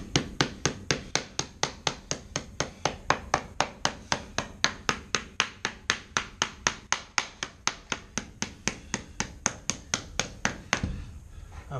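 A rubber mallet taps quickly and steadily on flooring.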